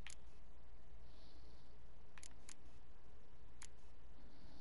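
Soft menu clicks tick as a cursor moves between items.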